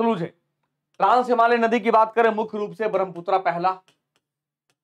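A man speaks animatedly into a close microphone.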